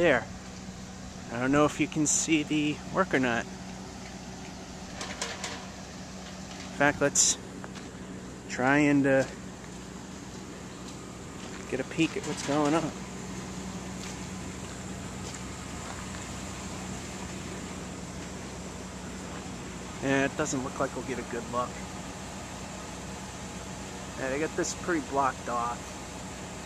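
A truck engine idles with a low steady hum nearby.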